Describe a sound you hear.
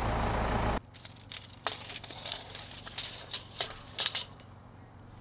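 A metal tape measure rattles and clicks against wood.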